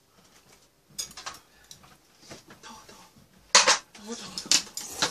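A portable stove clunks as it is set down.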